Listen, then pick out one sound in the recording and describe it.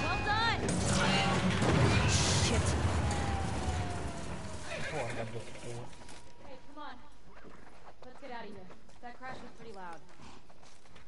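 Another young woman calls out with excitement.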